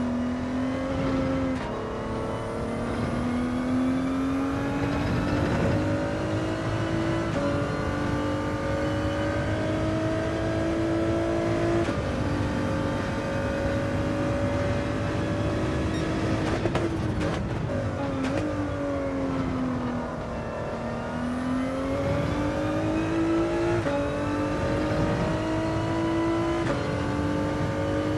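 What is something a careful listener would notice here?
A racing car engine roars steadily, its pitch rising through each gear and dropping as it slows for corners.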